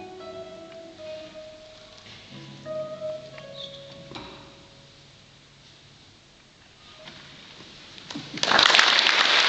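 Two acoustic guitars play a melody together.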